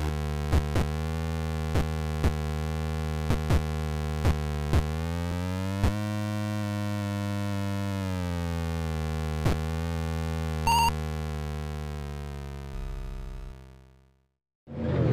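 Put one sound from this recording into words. A truck engine drones in a steady electronic tone, rising and falling in pitch.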